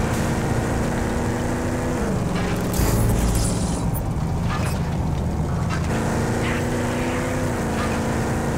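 Tyres rumble on gravel.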